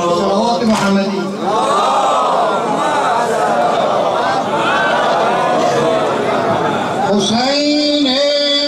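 A man chants a mournful melody through a loudspeaker.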